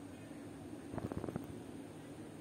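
A small tool clicks and scrapes against a circuit board.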